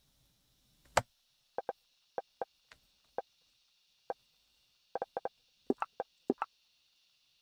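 Short soft clicks sound as menu items are selected.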